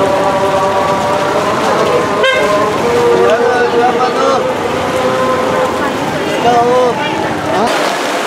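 Rain patters steadily on umbrellas.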